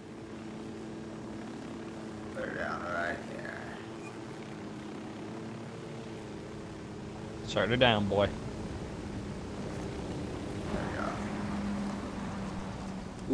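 A helicopter engine hums and its rotor whirs steadily nearby.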